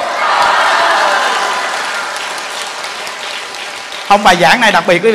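A large crowd laughs and claps.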